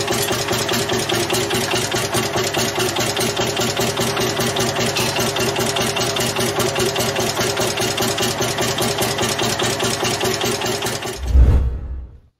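A large single-cylinder tractor engine chugs steadily and rapidly nearby.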